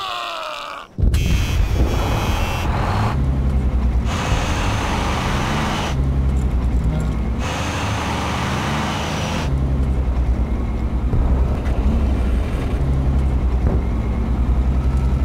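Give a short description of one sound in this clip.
An armoured vehicle's engine rumbles loudly and deeply.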